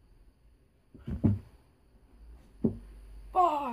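Dull thumps sound as a young man moves on the floor.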